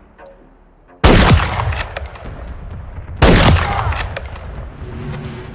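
A rifle fires two loud shots that echo away.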